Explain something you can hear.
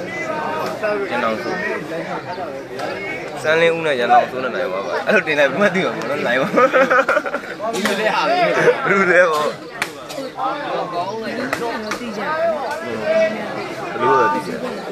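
A crowd of men and boys chatter and shout outdoors nearby.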